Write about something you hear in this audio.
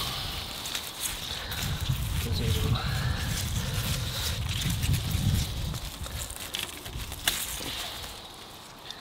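Leaves rustle as hands push through plants.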